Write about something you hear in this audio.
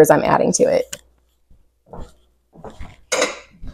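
A spoon clinks against a cup.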